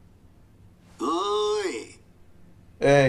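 A middle-aged man calls out loudly in a long, drawn-out greeting.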